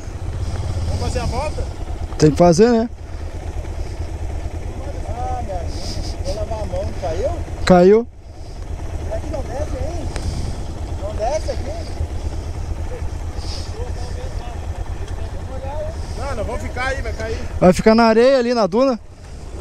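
Motorcycle engines idle with a steady low rumble.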